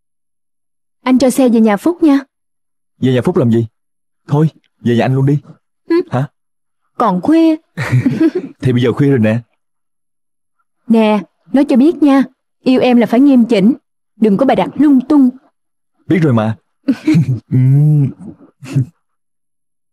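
A young woman talks softly and closely.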